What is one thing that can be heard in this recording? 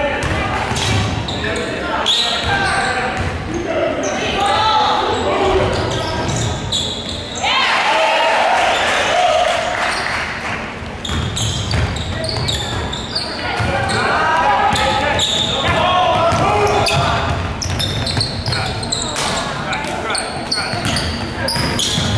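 Young women call out to each other on the court.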